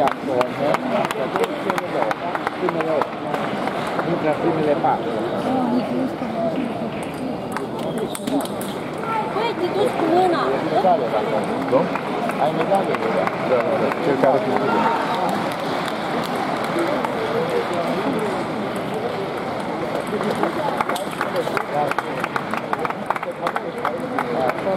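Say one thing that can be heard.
Table tennis balls click against paddles and the table in quick rallies.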